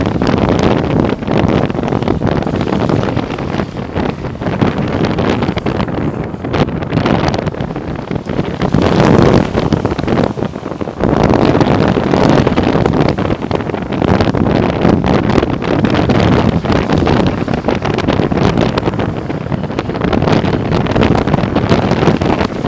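Skateboard wheels roar on asphalt at speed.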